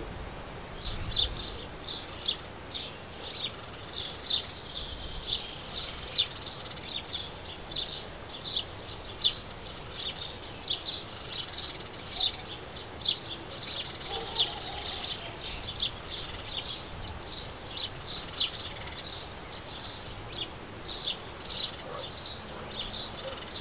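A sparrow chirps repeatedly, close by.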